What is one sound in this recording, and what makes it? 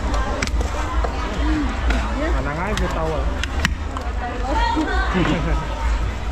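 A cleaver chops down onto a wooden block.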